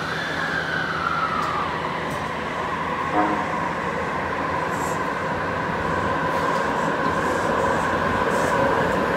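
A subway train rolls along with a steady rumble and a whining electric motor.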